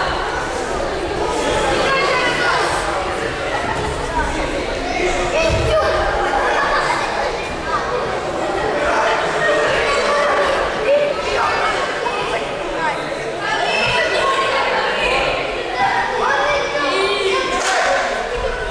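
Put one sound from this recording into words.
Many children chatter and call out at once in a large echoing hall.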